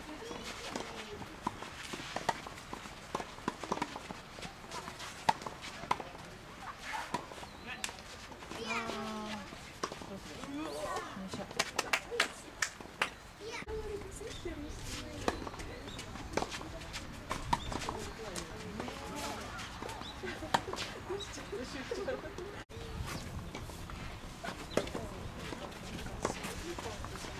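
Tennis balls are struck sharply with rackets and bounce on the court, heard from a distance outdoors.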